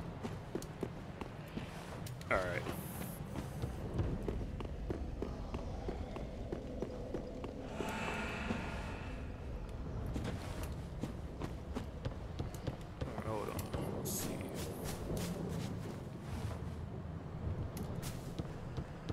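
Armoured footsteps thud quickly on stone and wooden boards.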